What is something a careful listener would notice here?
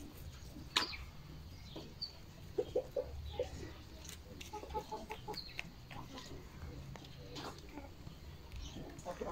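Hens cluck.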